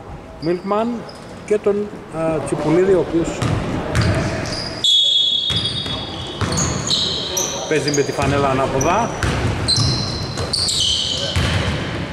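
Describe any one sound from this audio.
A basketball bounces on the floor.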